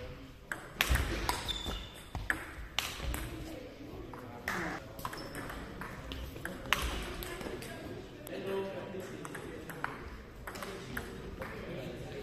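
Other ping-pong balls tap on tables across a large echoing hall.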